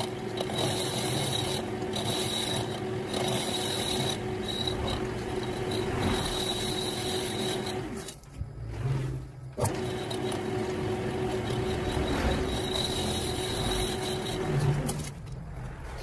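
A metal lathe spins with a steady whine as its cutter shaves metal.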